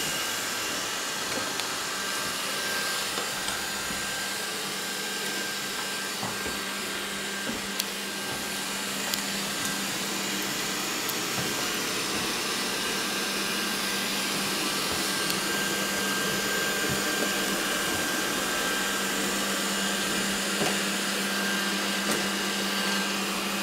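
A robot vacuum cleaner bumps softly against furniture and the wall.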